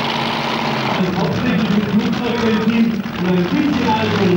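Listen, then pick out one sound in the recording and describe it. A tractor engine roars loudly and revs up.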